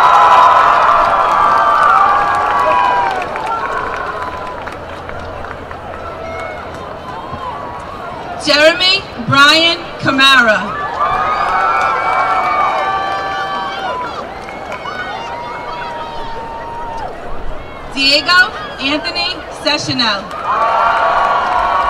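A large crowd claps in applause.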